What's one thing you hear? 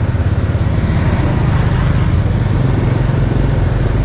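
A bus engine rumbles close by as the motorbike passes it.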